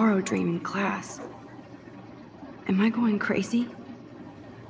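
A young woman speaks quietly to herself, close by.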